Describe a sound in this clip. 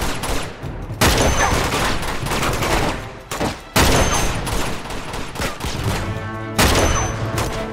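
A sniper rifle fires loud booming shots, each followed by a rolling echo.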